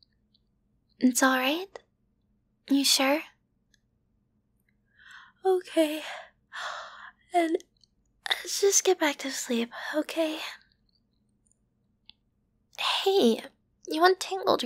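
A young woman speaks softly and playfully, close to a microphone.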